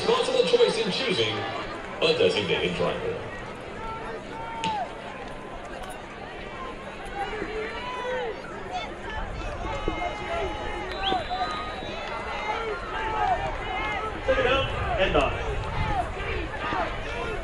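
A crowd murmurs and cheers in an open-air stadium.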